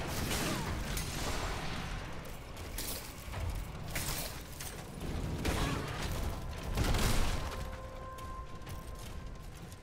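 Electric magic crackles and hums.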